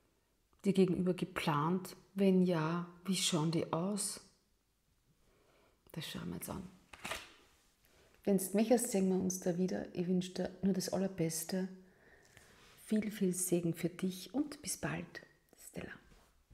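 A woman talks calmly and warmly, close by.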